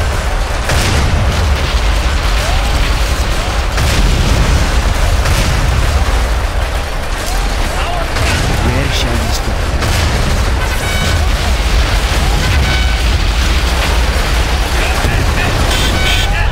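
Explosions boom and rumble from a battle.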